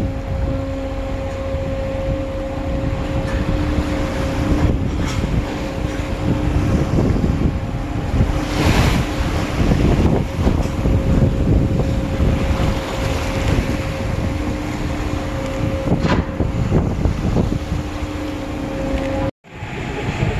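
A ship's engine hums steadily.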